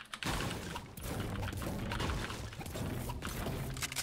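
A pickaxe strikes rock with sharp thuds.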